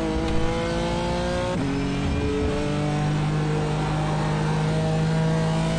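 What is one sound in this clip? A racing car engine revs high, drops in pitch as it shifts up a gear, then climbs steadily again.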